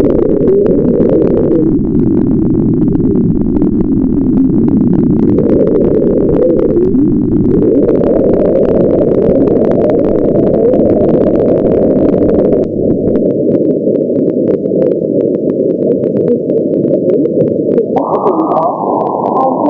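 Radio static hisses and crackles steadily from a receiver.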